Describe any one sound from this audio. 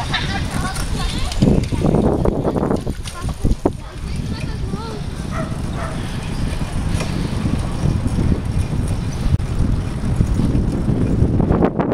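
Bicycle tyres roll steadily over a paved path.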